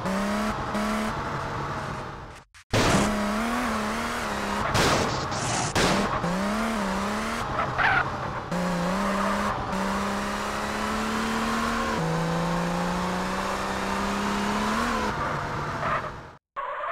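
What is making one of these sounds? A car engine roars and revs, shifting gears as it speeds up.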